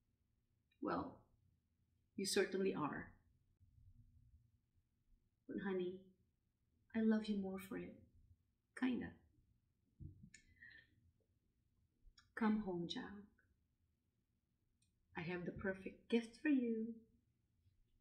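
A middle-aged woman speaks calmly and close to the microphone, with pauses.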